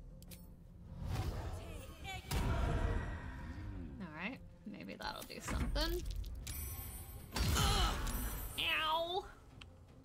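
Magic spells burst and crackle in loud blasts.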